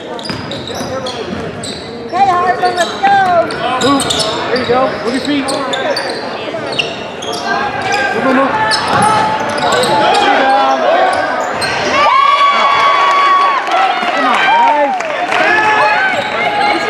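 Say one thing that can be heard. A crowd of spectators cheers and shouts in a large echoing hall.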